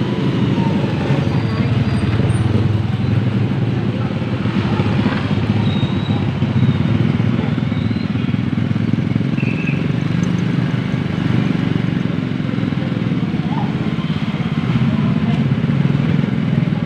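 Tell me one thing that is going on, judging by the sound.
Motorcycle engines pass by on a street.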